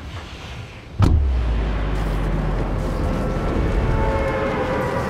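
A loud whoosh bursts out as a glider launches upward.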